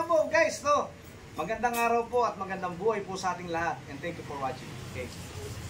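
A man talks calmly and cheerfully, close by.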